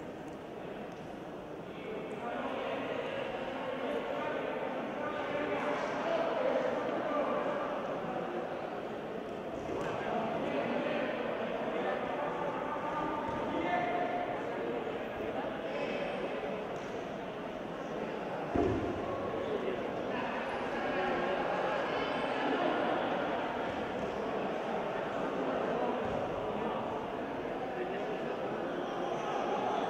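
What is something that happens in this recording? A crowd of people chatters and murmurs in a large echoing hall.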